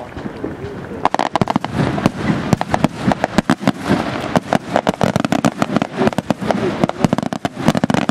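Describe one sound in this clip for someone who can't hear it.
Fireworks burst in rapid crackling bangs.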